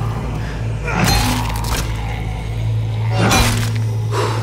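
A bat strikes a head with a heavy thud.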